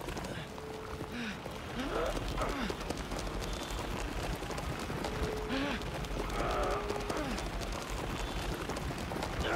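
Heavy doors creak and groan as they are pulled hard.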